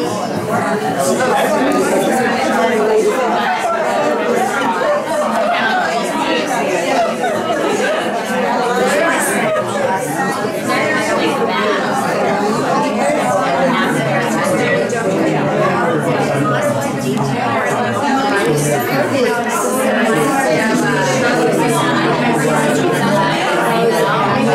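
A crowd of men and women chatter all around in a busy echoing room.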